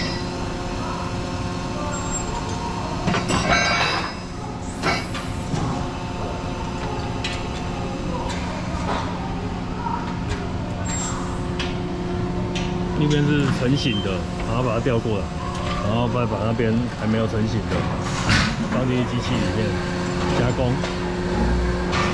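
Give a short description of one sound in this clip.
An industrial production machine hums steadily.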